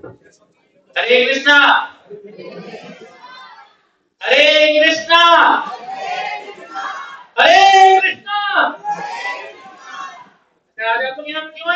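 A man speaks loudly over a loudspeaker in an echoing hall.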